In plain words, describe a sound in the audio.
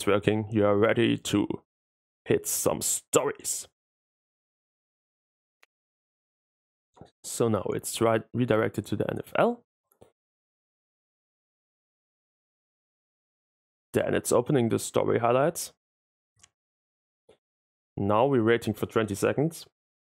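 A young man talks with animation, close to a microphone, in short bursts with pauses.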